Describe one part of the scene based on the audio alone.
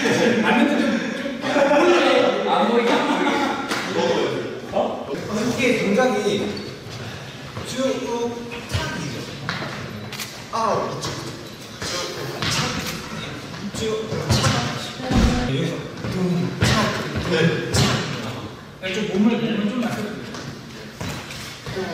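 Young men talk and laugh casually nearby.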